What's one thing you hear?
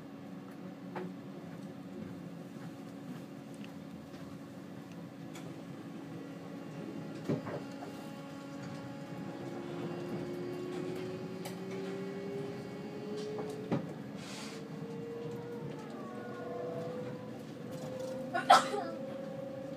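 Train wheels knock sharply over rail joints now and then.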